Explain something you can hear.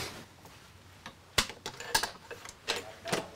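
Keys jingle and click in a door lock.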